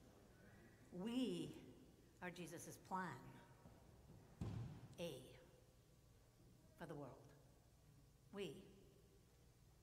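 A middle-aged woman speaks calmly through a microphone in an echoing hall.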